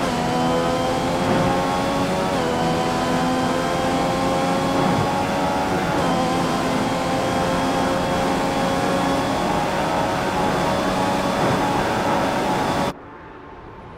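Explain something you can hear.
A racing car engine screams at high revs, rising through the gears.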